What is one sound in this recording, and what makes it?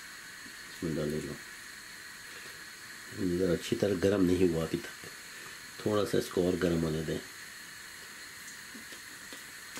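Batter sizzles softly in hot oil.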